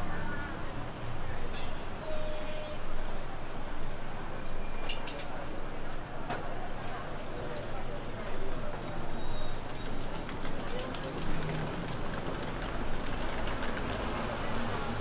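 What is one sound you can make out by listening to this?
Footsteps shuffle on paving.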